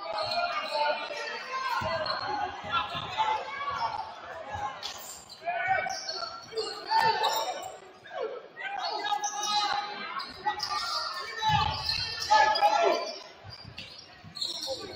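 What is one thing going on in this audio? A crowd of people chatters and calls out in a large echoing gym.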